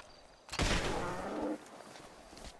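A shotgun fires a loud blast that booms briefly.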